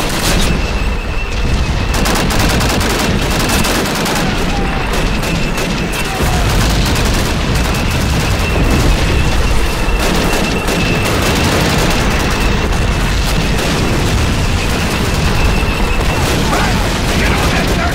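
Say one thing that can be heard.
Rapid gunfire crackles without a break in a loud battle.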